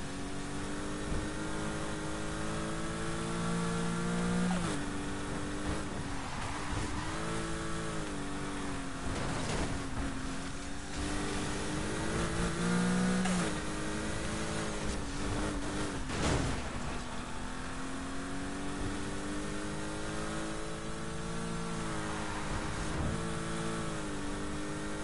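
A car engine roars at high revs, shifting gears as it speeds up.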